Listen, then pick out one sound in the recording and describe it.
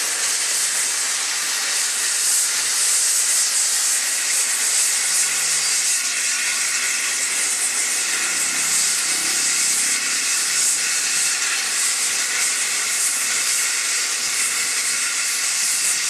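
A steam locomotive chuffs loudly as it pulls away.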